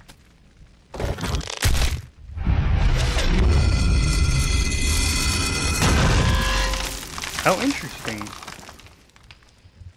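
A loud rumbling, roaring burst of game effects swells up suddenly and then fades away.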